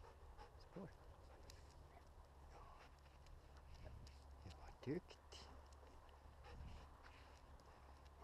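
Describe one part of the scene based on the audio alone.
A dog's claws patter on the asphalt as it runs.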